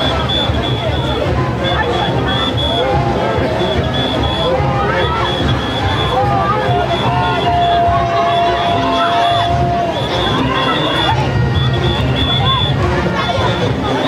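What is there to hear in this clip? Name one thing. A crowd of people chatters and calls out loudly outdoors.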